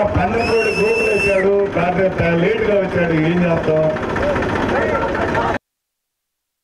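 A crowd of men and women sings a devotional chant together.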